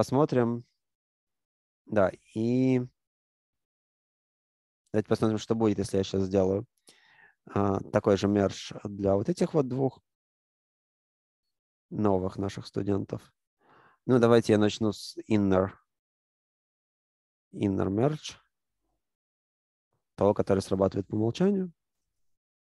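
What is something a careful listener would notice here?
A man speaks calmly into a microphone, explaining in short phrases.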